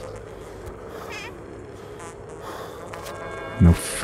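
A wooden lid creaks open.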